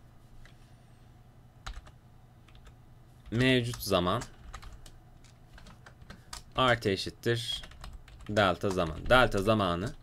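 Keys click softly on a computer keyboard.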